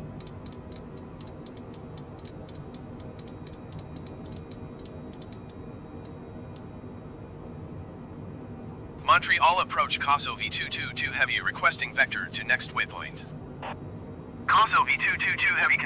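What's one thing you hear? Jet engines hum steadily in a low drone.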